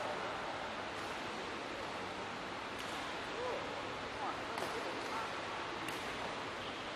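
A racket hits a shuttlecock with a light pop in a large echoing hall.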